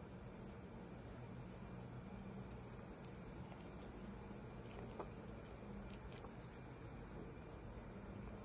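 A dog licks and nibbles at another dog's ear up close.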